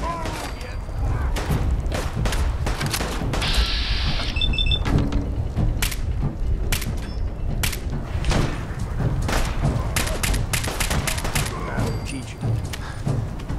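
Rifle shots ring out again and again, sharp and loud.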